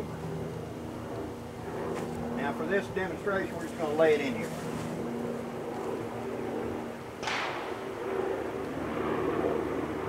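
Fabric rustles and swishes close by.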